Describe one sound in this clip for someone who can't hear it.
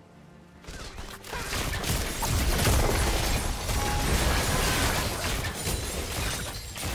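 Spell effects whoosh and crackle during a game battle.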